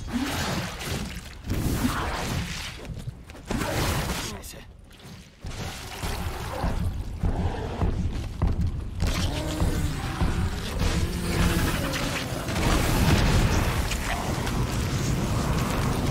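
A large monster roars and growls.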